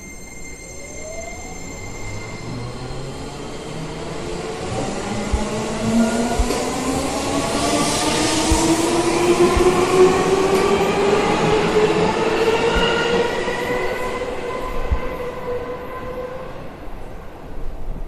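An electric train's motor whines, rising steadily in pitch.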